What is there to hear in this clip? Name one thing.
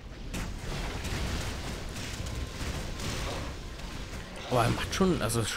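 Magic blasts whoosh and crackle as monsters are struck in a fight.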